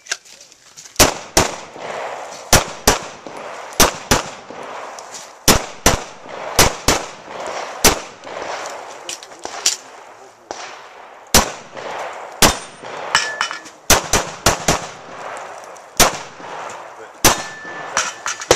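A handgun fires sharp shots in quick pairs outdoors, echoing off the surroundings.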